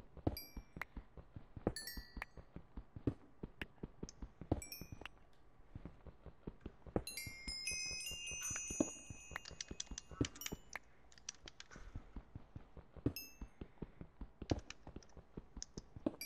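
A pickaxe taps rapidly on stone, breaking blocks with crumbling thuds.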